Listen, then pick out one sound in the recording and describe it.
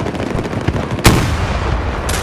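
A sniper rifle fires a single loud shot.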